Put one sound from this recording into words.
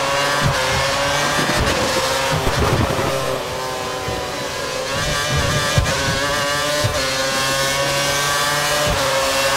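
A racing car engine screams at high revs, dropping in pitch on braking and rising again as it speeds up.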